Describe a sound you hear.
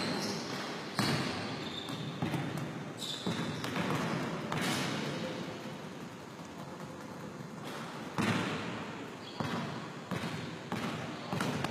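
A man talks calmly close by in an echoing hall.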